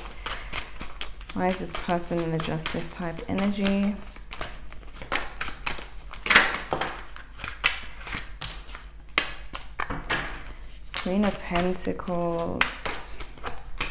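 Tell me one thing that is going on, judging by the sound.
Playing cards riffle and slap softly as they are shuffled.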